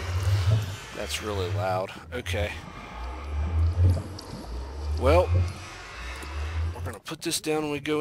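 A low portal hum drones steadily.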